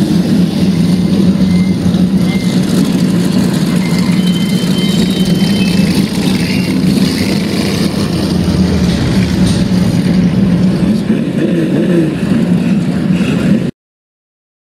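Race car engines roar steadily on a dirt track.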